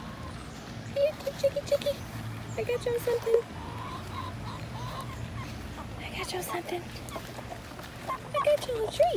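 Hens cluck and squawk close by.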